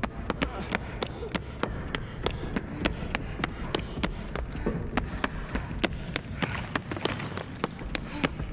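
Quick footsteps thud and tap on a hard floor.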